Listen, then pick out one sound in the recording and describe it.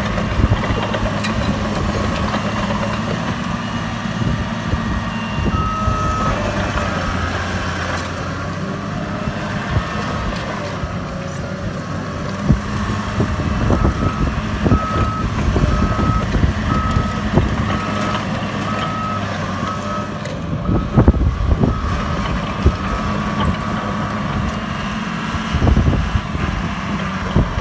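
A bulldozer engine rumbles steadily close by.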